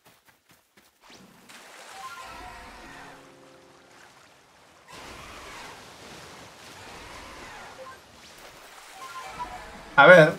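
Water splashes and churns as a rider skims across a lake.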